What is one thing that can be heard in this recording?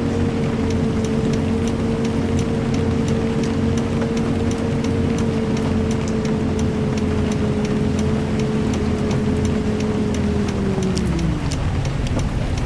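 A bus engine hums steadily, then its pitch drops near the end.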